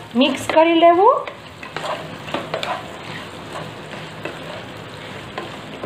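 A wooden spatula scrapes and stirs vegetables in a pan.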